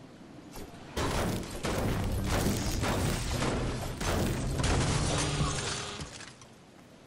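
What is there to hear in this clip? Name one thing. A pickaxe strikes a wooden trailer with hard thuds.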